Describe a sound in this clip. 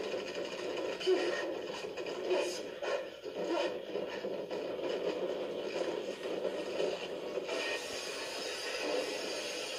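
Game sound effects crackle and burst from a television speaker.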